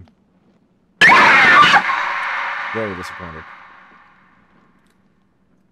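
A loud burst of static hisses and crackles, then fades away.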